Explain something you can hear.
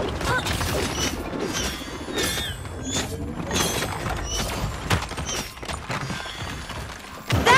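Sword strikes and magic effects clash in a video game battle.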